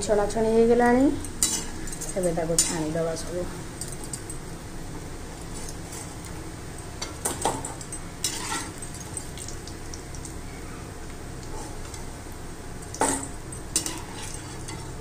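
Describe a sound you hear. A metal ladle clinks and scrapes against a wok.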